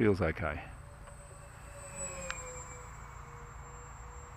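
A small model plane's motor buzzes past overhead, dropping in pitch as it passes.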